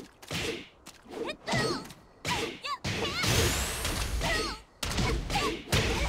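Sharp video game hit effects crack as fighters land punches and kicks.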